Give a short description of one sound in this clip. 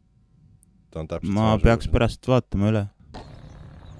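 A man speaks loudly and with animation, close to a microphone.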